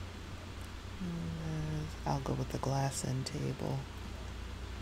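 A young woman speaks briefly and casually, close to a microphone.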